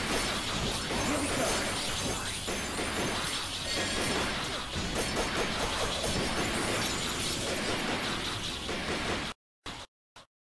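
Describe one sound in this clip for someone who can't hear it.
Game music plays with blasts and zaps of shots.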